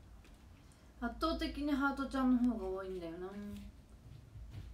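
A young woman speaks briefly and animatedly, close to a microphone.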